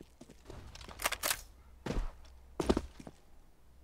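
A rifle fires a few sharp shots.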